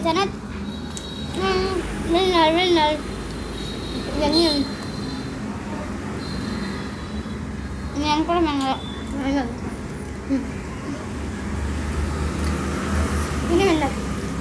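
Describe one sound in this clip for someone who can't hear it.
A spoon scrapes and clinks against a plastic cup.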